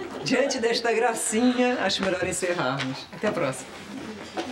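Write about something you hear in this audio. A woman speaks with animation, close by.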